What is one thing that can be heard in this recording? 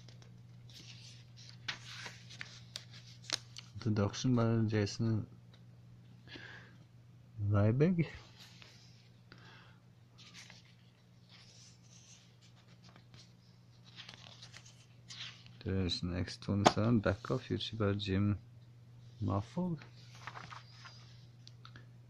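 Glossy magazine pages rustle and flap as they are turned.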